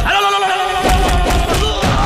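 A man shouts angrily into a phone.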